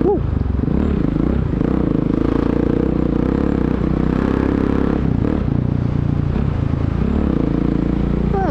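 A motorcycle engine hums and revs up close.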